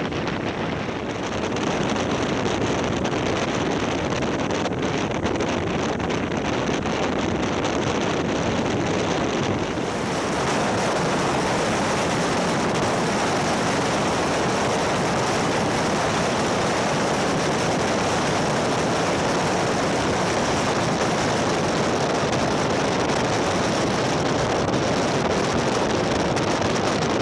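Wind rushes loudly past, growing stronger.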